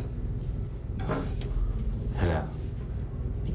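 A man answers quietly, close by.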